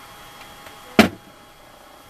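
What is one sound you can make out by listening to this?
A glass bottle clinks sharply against a hard surface.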